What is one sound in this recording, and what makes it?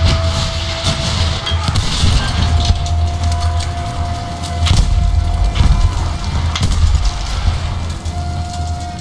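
Explosions rumble heavily.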